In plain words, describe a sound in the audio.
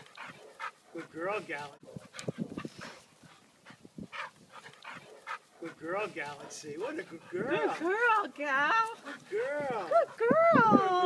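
Dogs yelp and whine in high, rising and falling cries.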